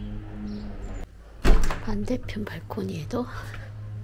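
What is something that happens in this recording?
A balcony door slides open with a click.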